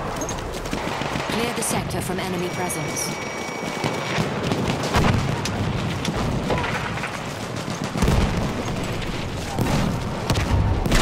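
Gunfire crackles and booms in a battle.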